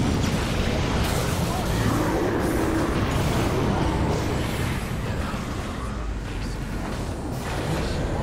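Magic spells crackle and boom in a fierce fight.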